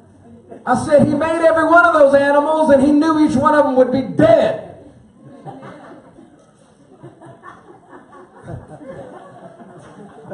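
A man speaks loudly and with animation through a microphone in a large echoing hall.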